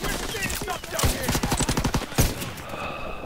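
A rapid burst of automatic gunfire rattles.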